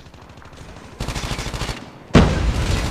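A rifle fires a rapid burst of shots.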